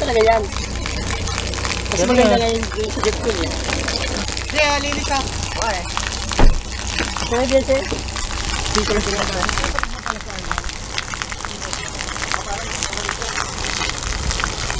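Water gushes from a pipe and splashes onto concrete.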